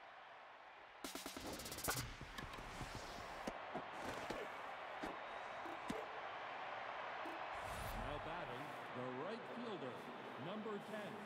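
A crowd cheers and murmurs in a large stadium.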